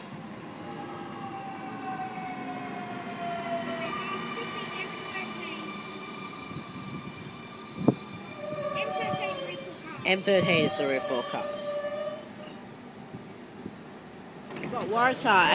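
A train's electric motors whine as it slowly rolls along a platform.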